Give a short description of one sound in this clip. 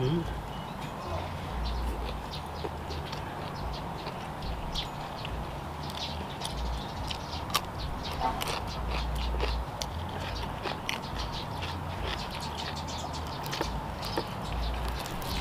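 A man chews food loudly with wet smacking sounds close to a microphone.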